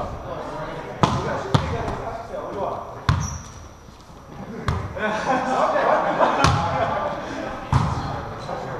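A volleyball thumps sharply as players hit it in a large echoing gym.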